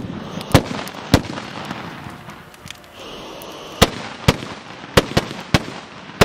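Carbide cannons fire sharp booming blasts outdoors.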